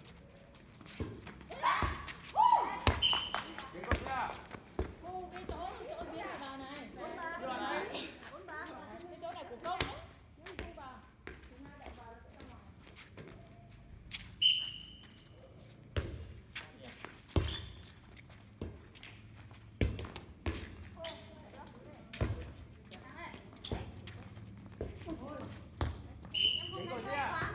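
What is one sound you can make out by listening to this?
A volleyball is struck with sharp slaps, over and over.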